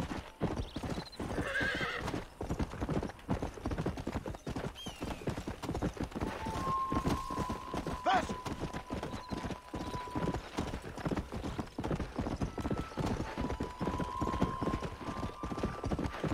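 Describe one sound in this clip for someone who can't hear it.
Hooves gallop steadily over dry ground.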